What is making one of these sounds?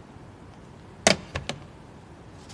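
A phone handset clicks down onto its base.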